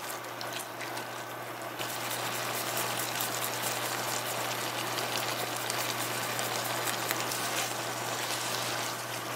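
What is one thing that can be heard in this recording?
A spatula stirs and scrapes through noodles in a pan.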